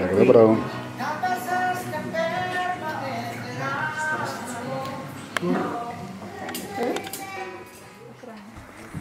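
A woman talks and laughs nearby.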